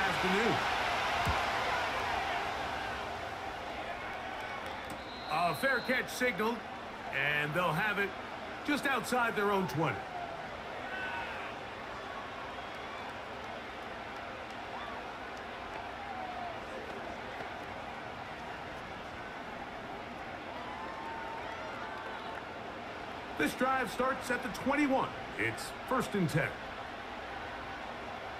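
A large crowd cheers loudly and then settles into a steady murmur.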